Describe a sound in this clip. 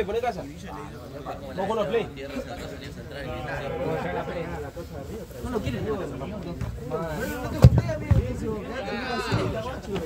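A football thuds when it is kicked.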